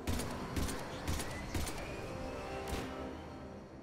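Gunshots ring out in quick bursts with a lingering echo.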